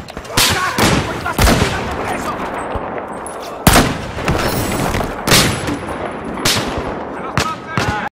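Gunshots crack loudly again and again.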